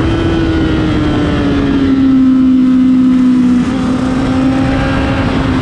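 A motorcycle engine roars loudly at high speed, its pitch dipping and then rising again after a gear change.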